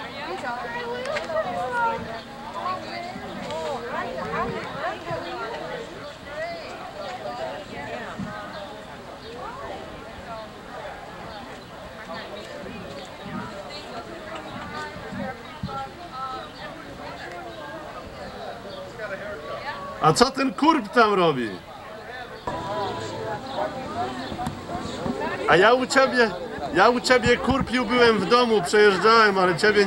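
A crowd of adults chatters outdoors.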